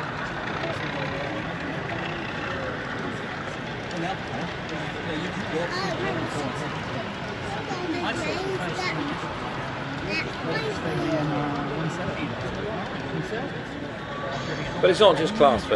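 A model train hums and rattles softly along its track.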